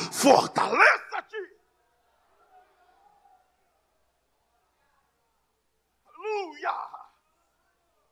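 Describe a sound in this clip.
A man preaches loudly and with animation through a microphone in a large echoing hall.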